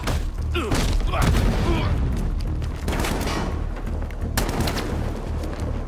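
Heavy blows land with dull thuds and whooshes.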